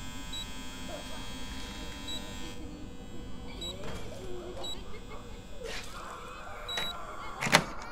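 A keypad beeps with short high tones as buttons are pressed.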